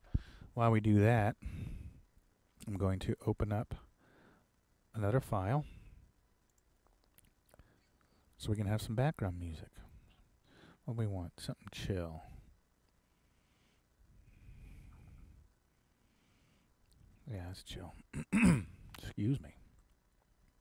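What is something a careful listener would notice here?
A man speaks calmly into a close headset microphone, in short phrases with pauses.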